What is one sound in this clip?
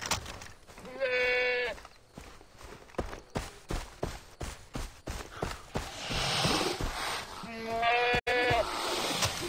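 A goat bleats.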